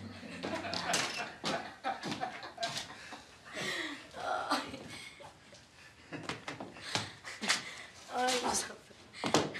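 Footsteps sound on a floor.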